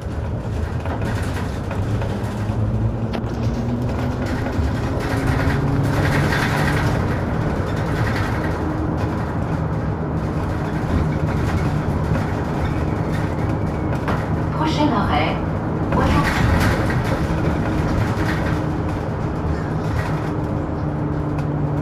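Tyres roll on the road with a constant rush.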